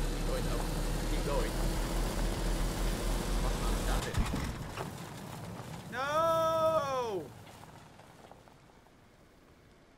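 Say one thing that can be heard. Tyres roll over a rough road surface.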